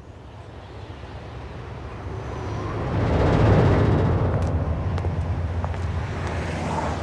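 A tanker truck roars past on a road.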